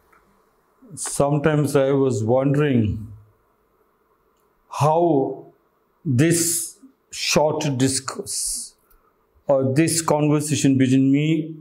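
A middle-aged man speaks calmly and with expression, close to a microphone.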